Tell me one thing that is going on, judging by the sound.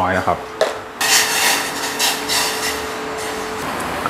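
Hot liquid sizzles and bubbles in a pot.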